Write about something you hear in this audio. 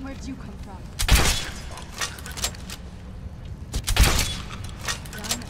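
A crossbow fires a bolt with a sharp thwack.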